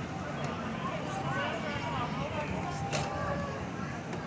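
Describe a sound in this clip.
Children shout and squeal nearby.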